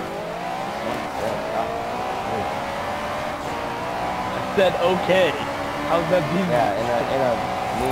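A car engine roars steadily, its pitch slowly climbing as it speeds up.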